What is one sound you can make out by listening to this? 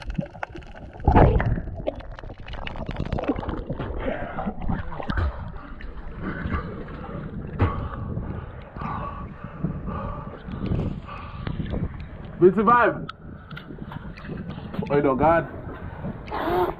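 Water sloshes and laps against posts close by.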